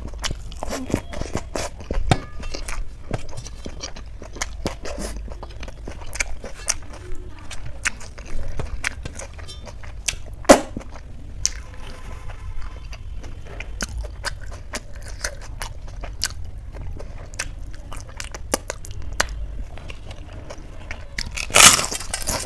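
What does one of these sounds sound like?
A woman chews and smacks her lips close to a microphone.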